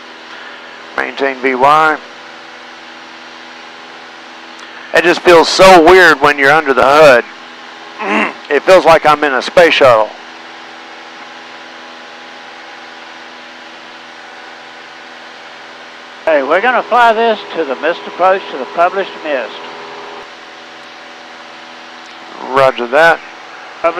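A man speaks calmly over a headset intercom, in short bursts.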